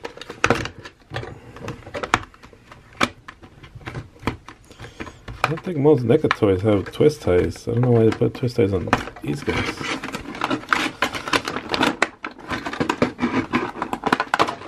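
Plastic packaging crinkles and rustles as hands handle it.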